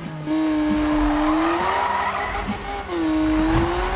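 Tyres screech loudly in a skid.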